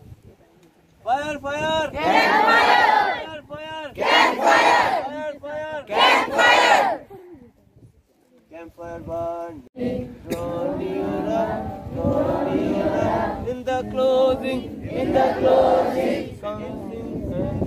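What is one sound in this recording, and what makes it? A crowd of young men and women chants loudly together outdoors.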